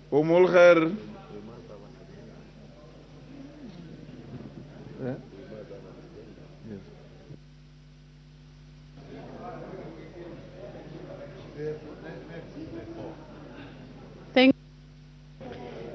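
Many people murmur quietly in a large hall.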